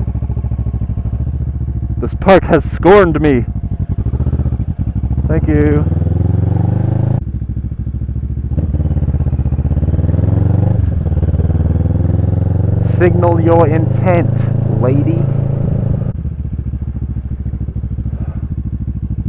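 A motorcycle engine hums steadily, rising and falling in pitch as it speeds up and slows down.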